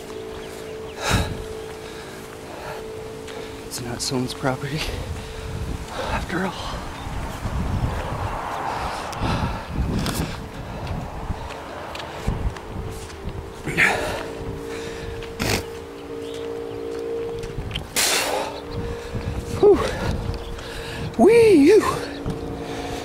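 Wind buffets the microphone outdoors in gusts.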